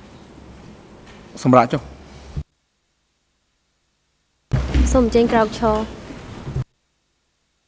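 A man speaks briefly and formally through a microphone.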